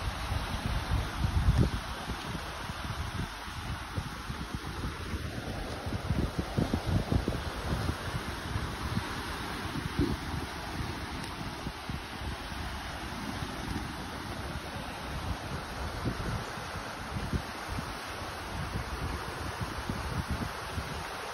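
Waves wash on a beach.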